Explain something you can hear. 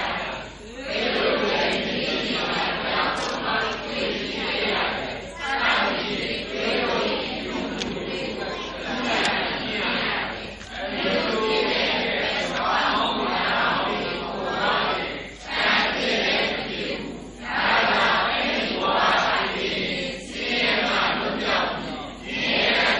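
An elderly man speaks steadily into a microphone, heard through a loudspeaker.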